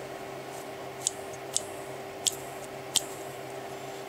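Small plastic and metal parts click sharply as fingers handle them.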